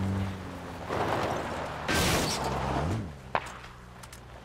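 A vehicle engine hums and then stops.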